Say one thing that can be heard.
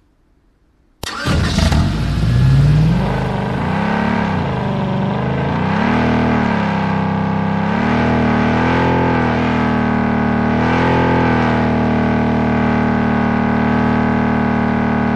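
A vehicle engine starts and revs, rising and falling as it drives.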